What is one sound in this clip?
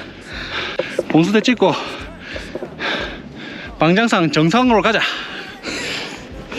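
A middle-aged man speaks cheerfully close by.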